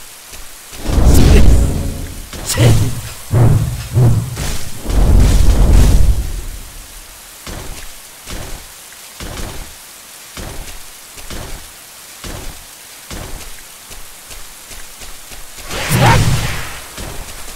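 A huge sword swings and slashes with heavy whooshes.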